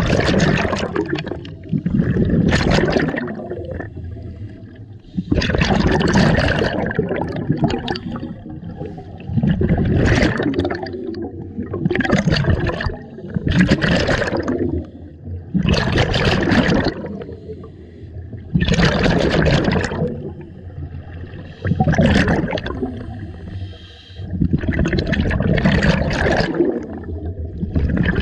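A diver breathes through a regulator underwater, with loud bursts of bubbles every few seconds.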